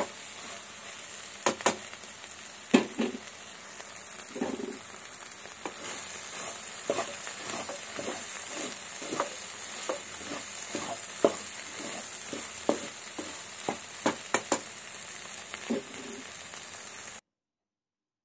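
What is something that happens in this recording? A wooden spatula scrapes and knocks against a metal pan while stirring food.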